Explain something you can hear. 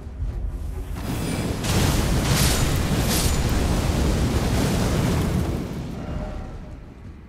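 Fire roars and crackles in a loud burst.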